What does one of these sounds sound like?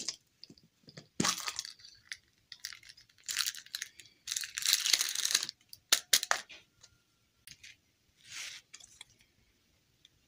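Plastic wrappers crinkle and rustle close by.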